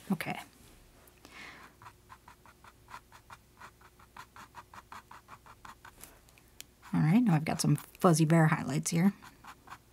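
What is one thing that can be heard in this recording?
A paintbrush dabs and scrapes on canvas.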